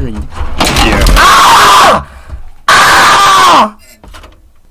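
A young man shouts loudly into a microphone.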